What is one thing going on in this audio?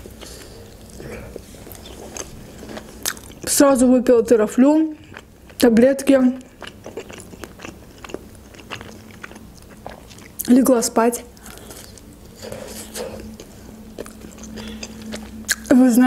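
A young woman chews food close to a microphone.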